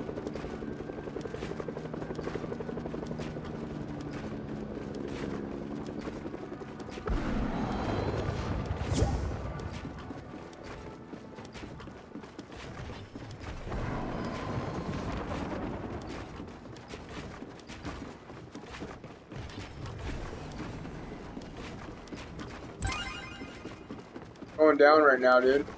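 Quick footsteps clatter on wooden planks.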